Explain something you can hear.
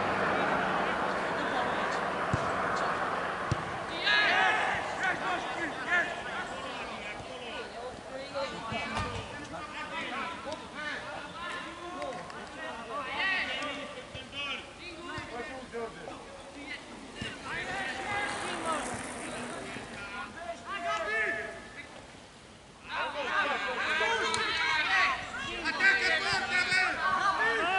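Men shout and call out across an open playing field outdoors.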